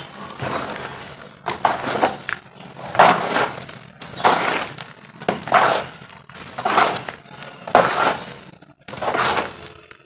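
Hands squish and squelch through wet mud.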